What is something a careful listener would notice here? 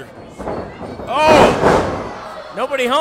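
A wrestler crashes heavily onto the ring mat.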